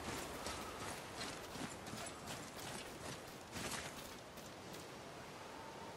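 Heavy footsteps crunch on stone and gravel.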